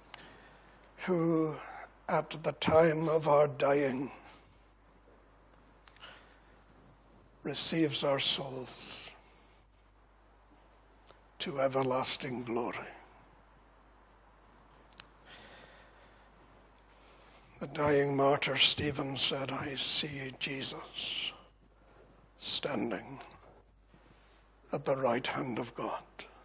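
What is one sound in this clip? An elderly man speaks slowly and deliberately into a microphone, in short phrases with pauses.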